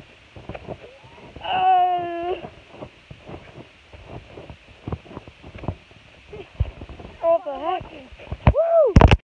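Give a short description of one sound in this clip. A young boy bounces on a trampoline with soft thumps and creaks.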